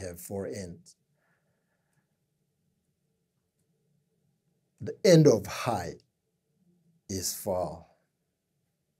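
A man speaks calmly and closely into a microphone, with long pauses.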